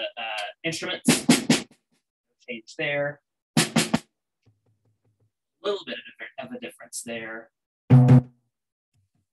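Drumsticks strike drums and cymbals in short bursts.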